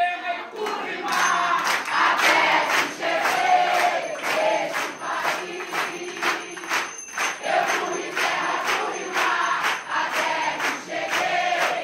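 A crowd of people claps hands in a steady rhythm.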